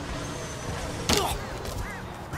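A heavy blow lands with a sharp thud.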